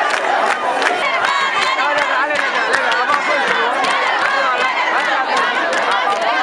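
A crowd of women ululates in high, trilling voices.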